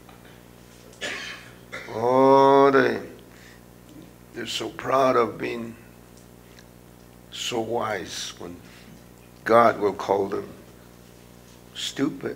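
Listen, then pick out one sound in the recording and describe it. An older man speaks slowly and deliberately through a microphone, with pauses between phrases.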